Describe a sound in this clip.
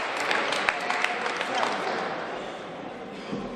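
Spectators clap in a large echoing hall and the clapping fades.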